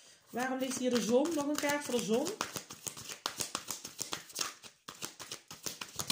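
Playing cards riffle and slap quickly as they are shuffled.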